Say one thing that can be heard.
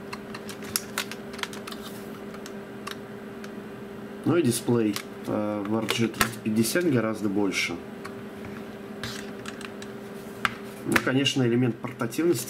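Plastic game consoles click and tap softly as they are handled.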